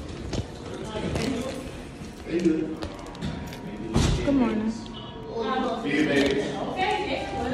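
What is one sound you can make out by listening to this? A young woman talks close to a phone microphone.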